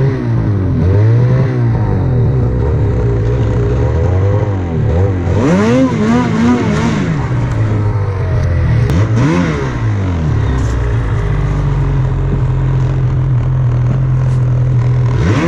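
A snowmobile engine revs up and down loudly, close by.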